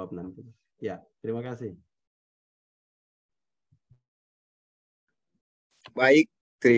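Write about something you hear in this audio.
A man speaks calmly through an online call, in short phrases.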